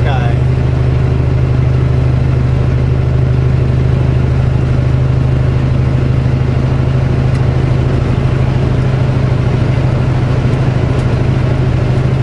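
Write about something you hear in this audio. Oncoming trucks rush past.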